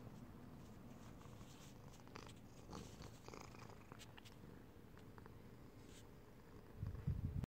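A cat purrs close by.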